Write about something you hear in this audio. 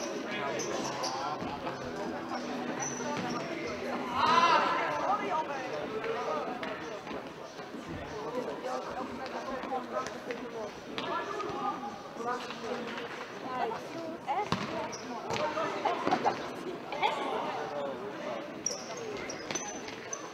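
Sneakers squeak on the hall floor.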